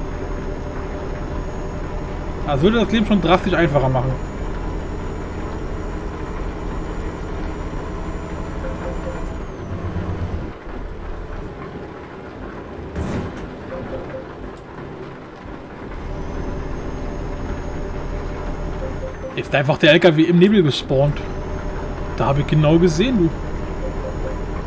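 A simulated diesel truck engine drones while driving.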